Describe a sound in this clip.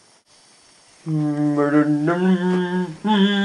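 A young man sings loudly in a drawn-out voice close by.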